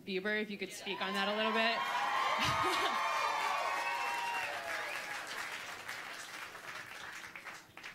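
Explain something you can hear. A crowd laughs and cheers in a large echoing hall.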